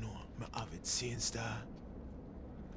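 A man speaks in a low, casual voice close by.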